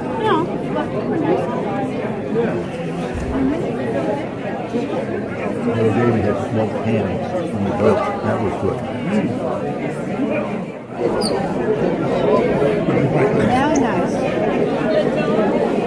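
Many elderly men and women chatter at once, filling a large echoing room.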